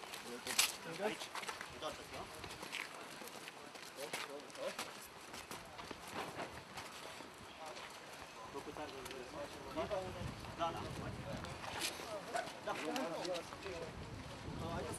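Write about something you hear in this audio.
Men talk nearby outdoors.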